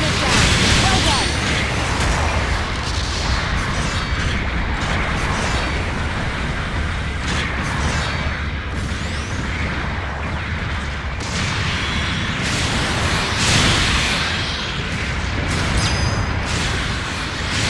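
Thrusters roar steadily.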